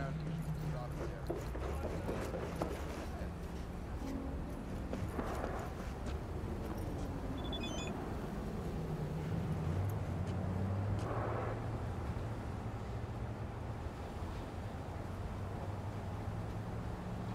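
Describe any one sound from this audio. Car engines hum and rumble in traffic.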